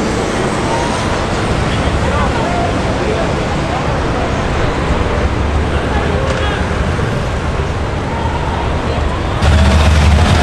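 Men talk in a crowd nearby.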